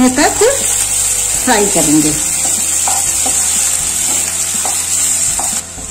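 A wooden spatula scrapes and stirs food in a pan.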